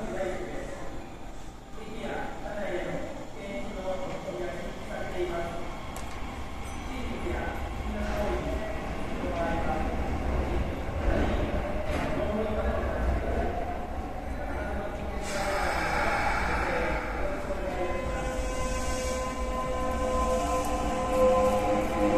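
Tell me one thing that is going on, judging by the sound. A train rumbles slowly into an echoing underground station.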